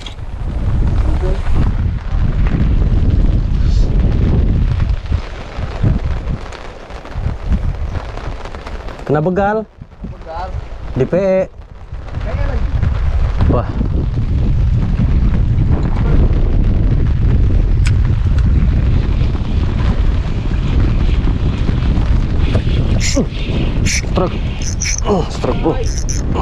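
Wind rumbles and buffets steadily outdoors on open water.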